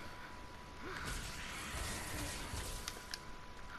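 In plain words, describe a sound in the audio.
Magic attack effects whoosh and crackle in a video game.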